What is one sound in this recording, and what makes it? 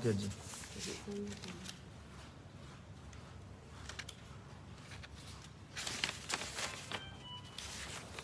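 Sheets of paper rustle.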